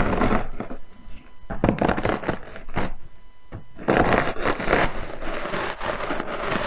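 A rolling pin crushes cookies inside a plastic bag, crunching and crackling.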